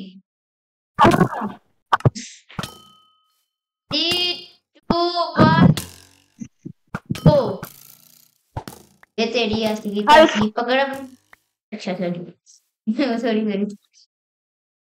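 A young boy talks with animation into a close microphone, in bursts with pauses.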